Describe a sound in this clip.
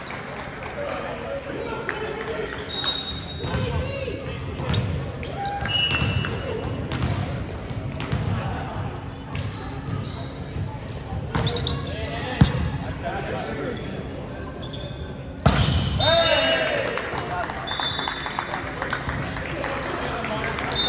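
A volleyball is hit with sharp slaps that echo in a large gym.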